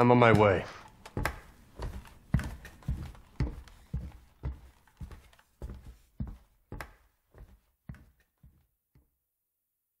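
Heavy footsteps walk away and fade into the distance.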